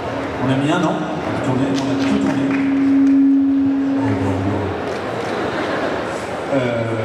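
A young man speaks with animation into a microphone over loudspeakers in a large room.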